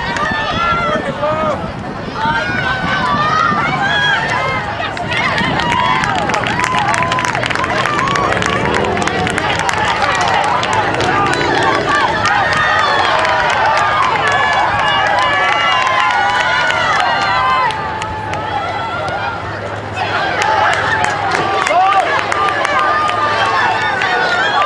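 A crowd of spectators chatters and calls out close by.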